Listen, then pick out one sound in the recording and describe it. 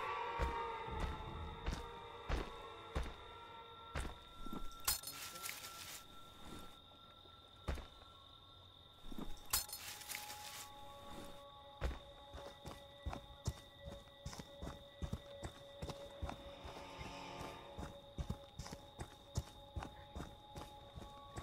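Footsteps crunch over leaves and dirt.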